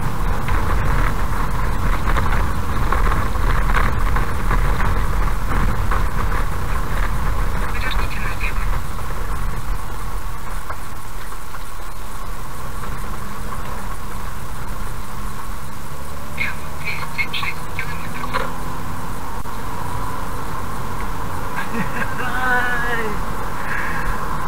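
Tyres rumble steadily on the road, heard from inside a car.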